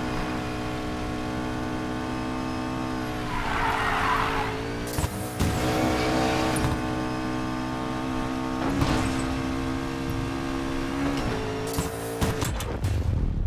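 A sports car engine roars at high speed, its pitch shifting through gear changes.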